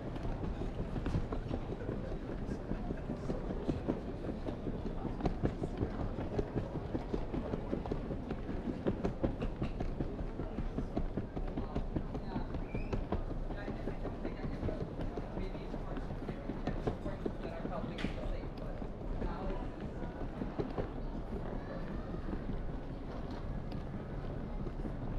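Footsteps tap on a tiled floor.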